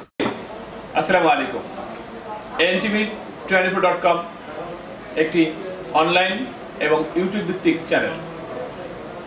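A man speaks calmly and close by to the listener.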